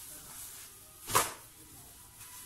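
A cloth flaps as it is shaken out.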